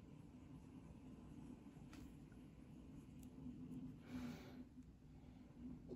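Hands handle a plastic figure with faint clicks.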